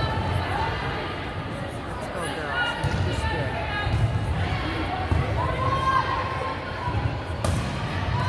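A volleyball thuds off players' arms and hands.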